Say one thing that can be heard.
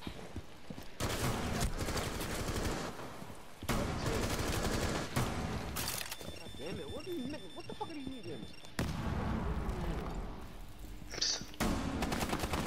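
A rifle fires single loud shots indoors.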